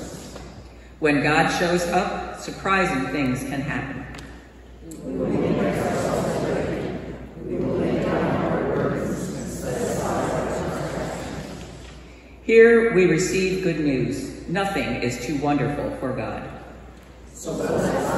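A middle-aged woman reads aloud steadily through a microphone in an echoing hall.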